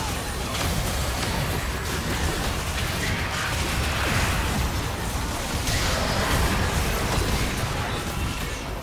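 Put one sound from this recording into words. Magic spells crackle and burst during a fast fight.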